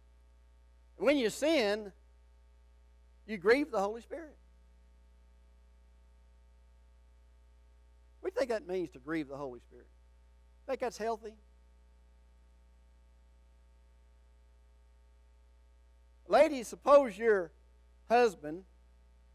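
An elderly man speaks slowly and earnestly through a microphone, with long pauses.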